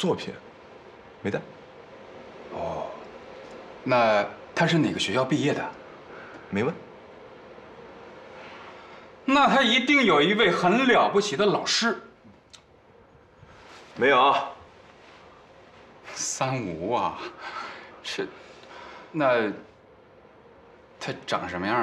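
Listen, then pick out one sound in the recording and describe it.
A young man answers calmly nearby.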